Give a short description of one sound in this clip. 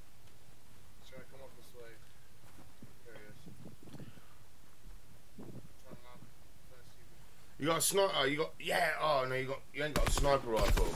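A young man talks into a close microphone, growing loud and animated.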